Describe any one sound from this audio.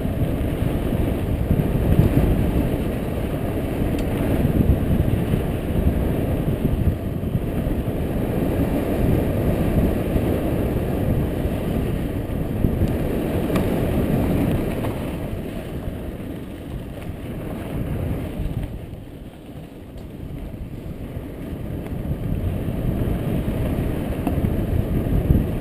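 Wind rumbles loudly.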